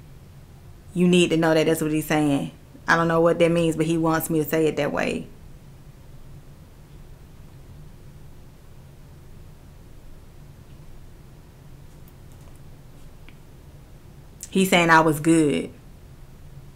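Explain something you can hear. A woman speaks calmly and closely into a microphone, with pauses.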